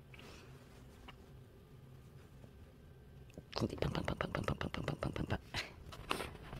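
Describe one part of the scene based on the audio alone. A hand rubs a kitten briskly against the bedding.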